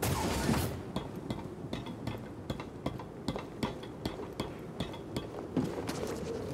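Footsteps patter quickly across stone.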